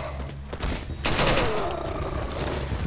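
A submachine gun fires a burst.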